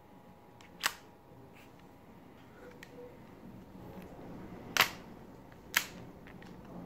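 Metal parts of a revolver click as they are handled.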